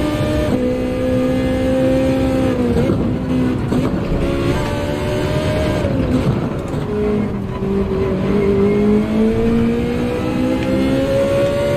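A racing car engine roars, dropping in pitch when slowing for corners and rising again as it speeds up.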